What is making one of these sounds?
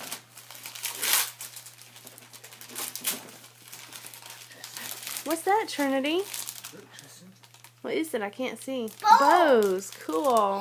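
Wrapping paper rustles and crinkles as a gift is unwrapped.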